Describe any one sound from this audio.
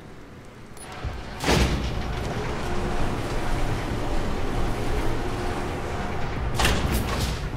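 An elevator car rumbles loudly as it travels through its shaft.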